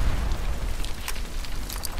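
An explosion booms with a low rumble.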